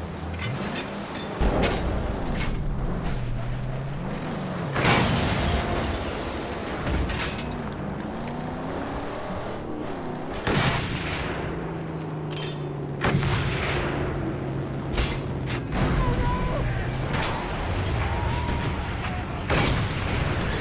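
Explosions boom loudly several times.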